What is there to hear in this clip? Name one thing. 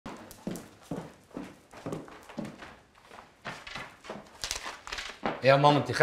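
Footsteps thud on wooden stairs and floor.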